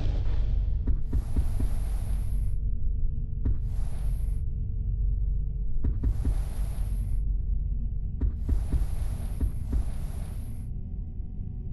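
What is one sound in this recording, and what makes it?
Soft whooshing chimes play as a menu selection moves.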